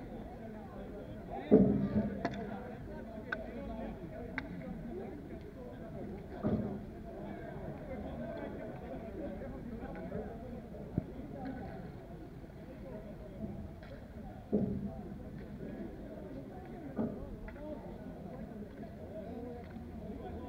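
Distant players shout and call out across an open outdoor court.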